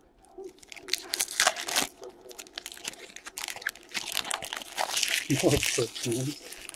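A foil card pack crinkles as it is torn open.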